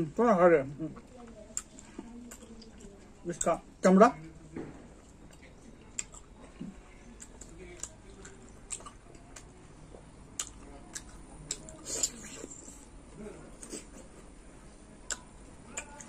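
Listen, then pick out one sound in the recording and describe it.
Fingers rustle and squelch through food on a plate.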